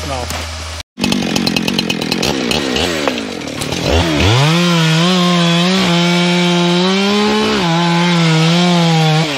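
A chainsaw revs up and cuts at full throttle with a loud high whine.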